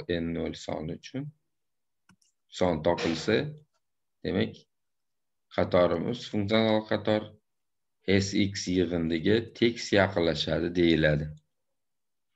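A man speaks calmly over an online call, explaining in pauses.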